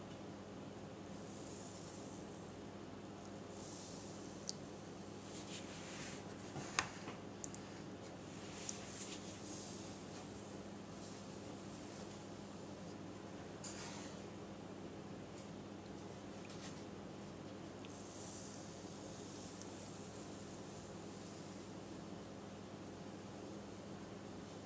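Sugar pours with a soft hiss into a bowl of liquid.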